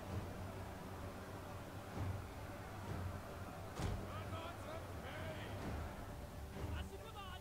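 A distant battle rumbles with a low, steady roar.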